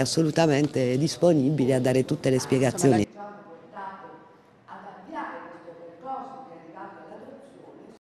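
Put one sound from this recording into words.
An elderly woman speaks with animation close to microphones.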